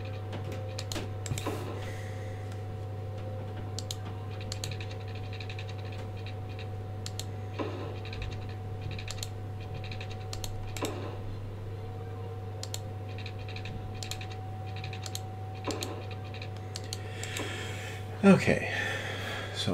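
Soft clicks and placement sounds from a city-building game ring out now and then.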